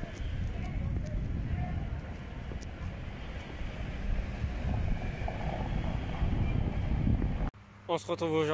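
Street noise and distant chatter fill the air outdoors.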